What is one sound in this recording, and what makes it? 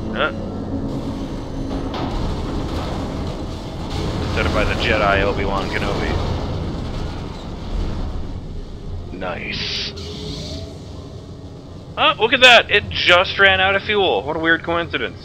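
A rocket engine roars and blasts out flames.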